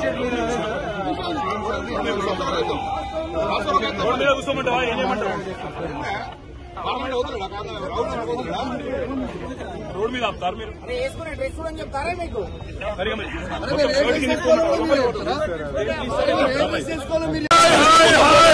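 A man speaks firmly close by.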